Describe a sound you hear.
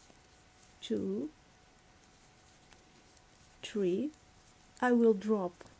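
Knitting needles click softly.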